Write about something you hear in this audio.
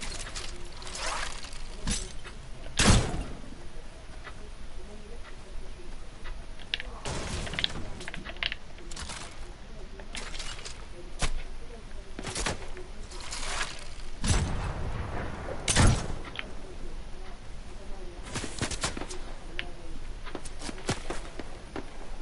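Sharp game sound effects thump and whoosh now and then.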